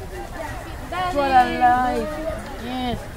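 A teenage girl talks close by.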